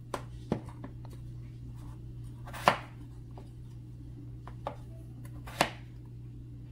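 A knife chops through raw potatoes on a plastic board.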